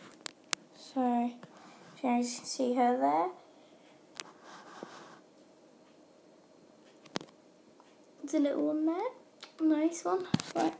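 A young girl speaks close by in a high, playful voice.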